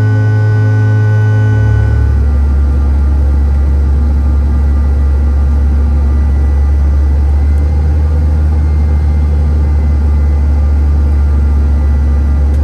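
Jet engines hum and roar steadily inside an airliner cabin.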